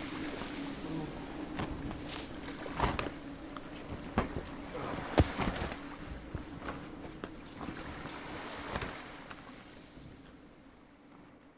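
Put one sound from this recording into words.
Wind blows steadily, then fades away.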